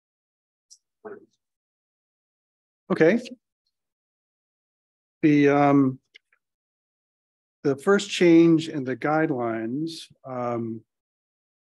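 A middle-aged man speaks calmly into a microphone in short bursts, with pauses.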